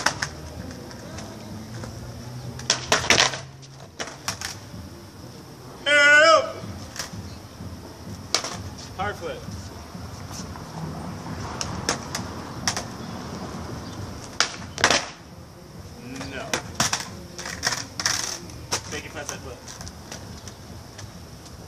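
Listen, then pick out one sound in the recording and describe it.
Skateboard wheels roll and rattle on pavement.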